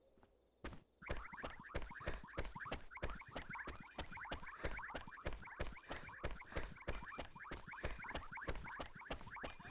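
Quick footsteps patter on pavement.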